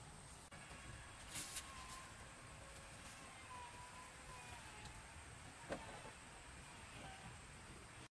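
A wooden pole thuds as a man knocks it into place.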